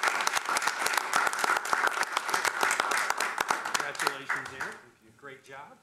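A room full of people applauds.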